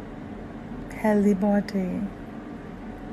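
A woman speaks briefly and clearly into a microphone.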